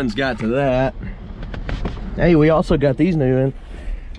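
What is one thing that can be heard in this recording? A fabric bag rustles as it is lifted off a seat.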